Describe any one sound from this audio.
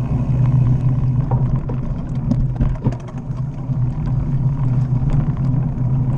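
A bicycle's tyres roll and crunch over a dirt trail.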